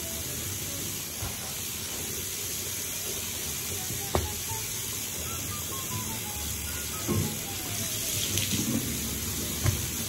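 A cloth squeaks and rubs against a basin.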